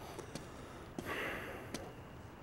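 Footsteps move across a floor.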